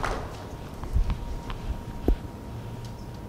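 Dull thumps and bumps sound from a wooden lectern.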